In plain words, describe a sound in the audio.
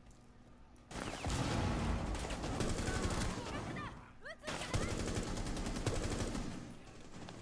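Gunshots fire in rapid, loud bursts.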